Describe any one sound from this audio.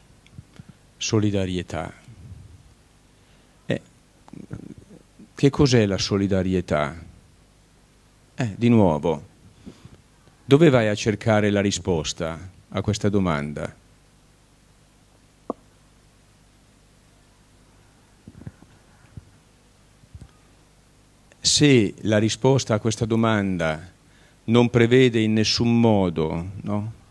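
An elderly man speaks calmly into a microphone, in bursts with pauses, in a large hall.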